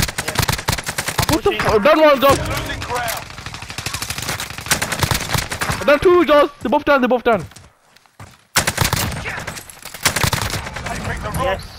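Rifle shots crack sharply.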